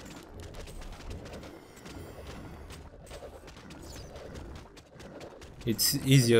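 Clashing weapons and spell effects crackle in a fast game battle.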